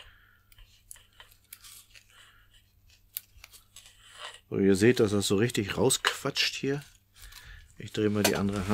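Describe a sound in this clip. Thread softly rustles as it is wound tightly around a rod.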